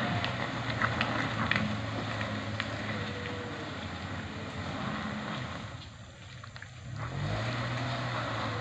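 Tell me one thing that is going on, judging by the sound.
Tyres squelch and splash through mud.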